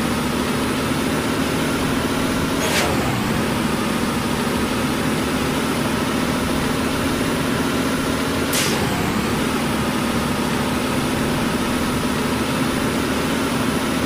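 A bus engine drones as the bus speeds up.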